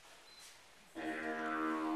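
A didgeridoo starts a loud, low, steady drone.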